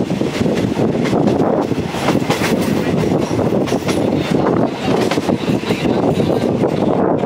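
A train rumbles steadily along the tracks close by.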